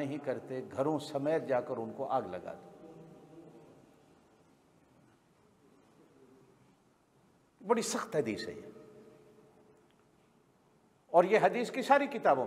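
An elderly man speaks calmly and slowly into a nearby microphone, with pauses, in a room with a slight echo.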